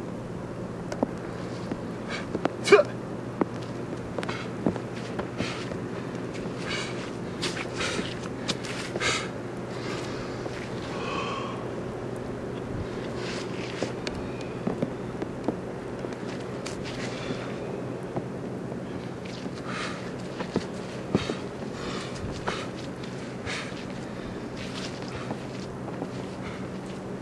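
A martial arts uniform snaps and swishes with quick strikes and kicks.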